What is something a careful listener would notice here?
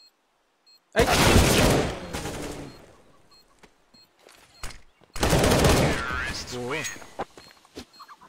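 A man shouts excitedly into a microphone close by.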